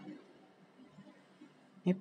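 Thick curd plops wetly into a steel pot.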